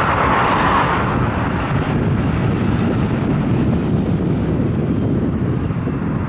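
A large truck rolls slowly forward.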